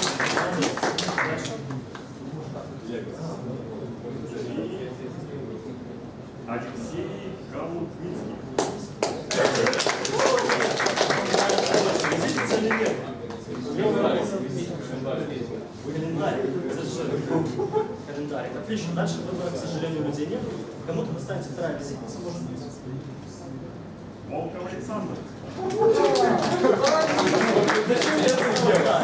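A man speaks to a group, calmly and with animation.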